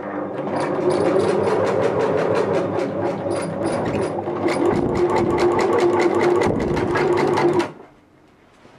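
A sewing machine runs fast with a rapid rattling stitch.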